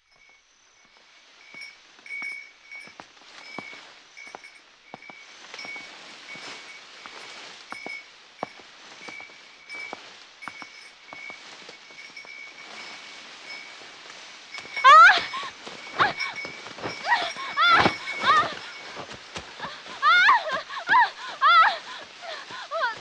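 Wind rustles through tall stalks of grass.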